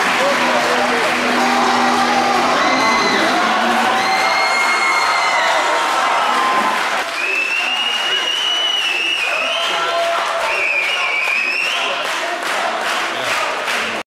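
A crowd of teenagers chatters in the background.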